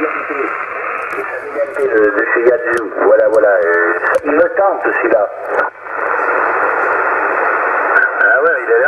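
A radio receiver hisses with loud static.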